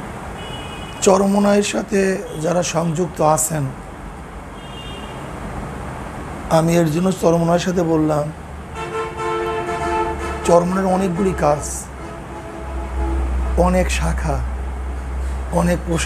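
A man speaks calmly into a microphone in a room with slight echo.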